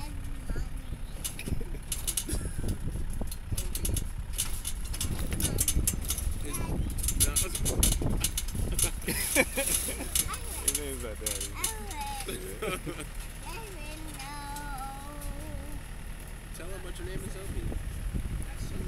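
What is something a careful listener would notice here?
A toddler giggles and babbles up close.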